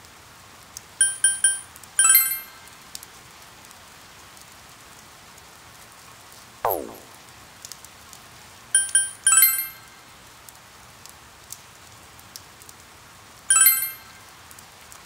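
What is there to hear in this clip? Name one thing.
Short electronic chimes ring out in quick bursts.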